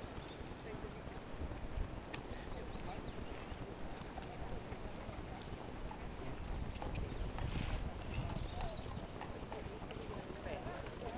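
A horse canters with soft thuds of hooves on sand.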